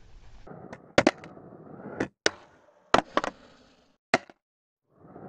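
A skateboard deck clacks sharply as it lands and snaps.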